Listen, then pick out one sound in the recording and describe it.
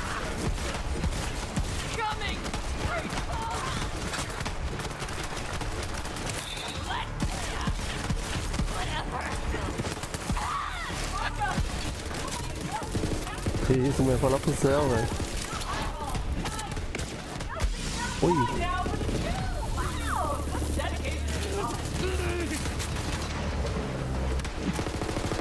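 Gunfire from a game crackles in rapid bursts.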